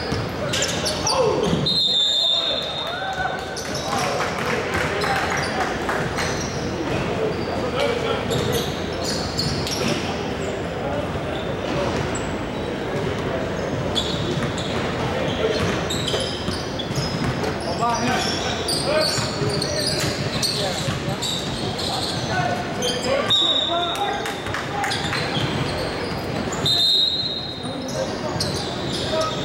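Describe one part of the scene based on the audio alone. Players and onlookers chatter and shout in a large echoing gym.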